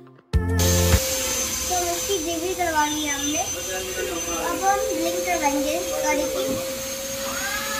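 A young boy speaks calmly close by.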